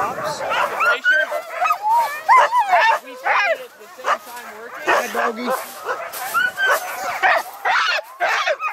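Dogs bark loudly close by.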